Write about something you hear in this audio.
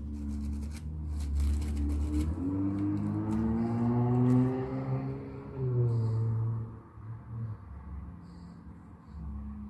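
Gloved hands rustle and crinkle a paper flower.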